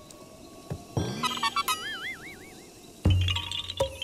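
A bright electronic jingle chimes.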